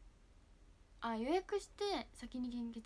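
A young woman speaks animatedly and close to a microphone.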